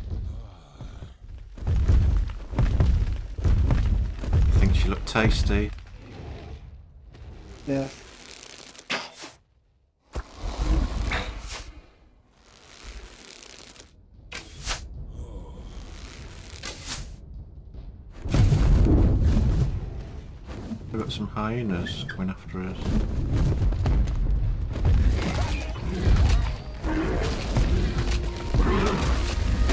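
Large wings beat with heavy, deep whooshes.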